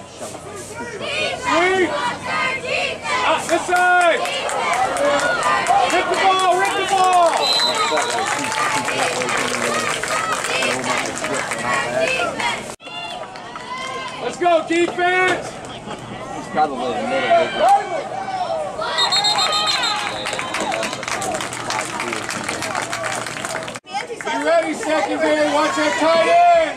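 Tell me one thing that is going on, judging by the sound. A crowd of spectators and young players shouts and cheers nearby outdoors.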